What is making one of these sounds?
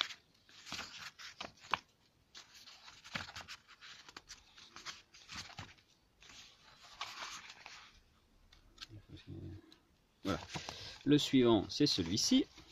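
Paper pages rustle and flip as a book is leafed through.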